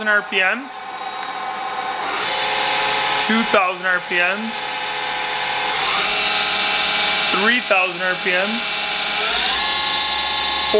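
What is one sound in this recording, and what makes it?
A machine spindle whirs with a steady, high whine that grows louder and shifts in pitch.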